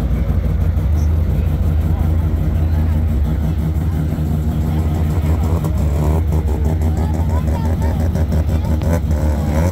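A crowd of men and women chatters outdoors in the background.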